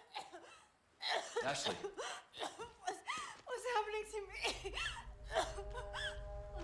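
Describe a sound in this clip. A young woman speaks in a frightened, shaky voice.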